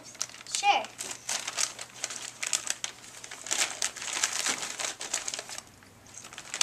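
Paper crinkles and rustles as it is handled.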